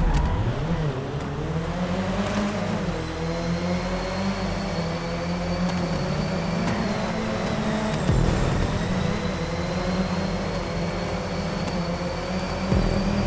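Other race car engines drone nearby.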